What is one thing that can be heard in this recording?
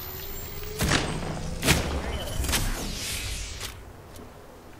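A shield battery charges up with a rising electric hum.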